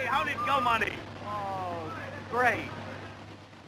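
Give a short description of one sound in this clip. Men talk briefly outdoors.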